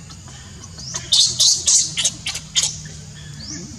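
A baby monkey shrieks loudly in short bursts.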